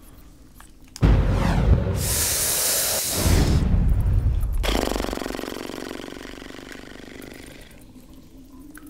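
A loud blast booms and rumbles, then slowly fades away.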